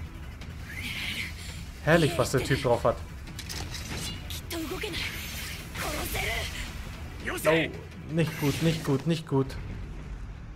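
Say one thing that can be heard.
A young woman speaks urgently and breathlessly.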